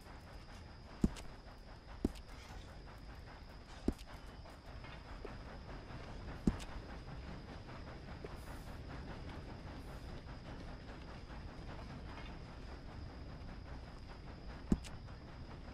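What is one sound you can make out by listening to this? Short menu clicks sound now and then.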